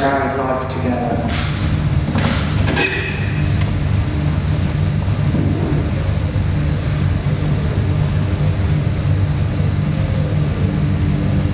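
A man speaks calmly, reading aloud in a large echoing hall.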